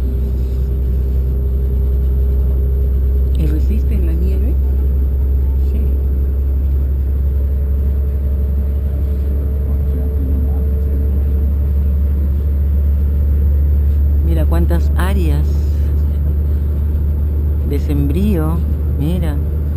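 A train rumbles steadily along the tracks with a low, constant drone.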